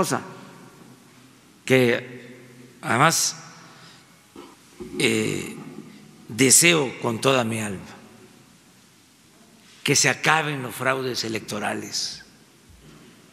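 An elderly man speaks slowly into a microphone, with long pauses, in a large echoing room.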